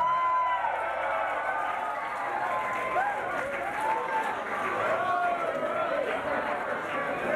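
A large crowd cheers and shouts loudly in an echoing hall.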